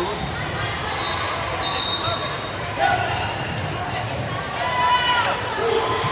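Young women call out to each other in a large echoing gym.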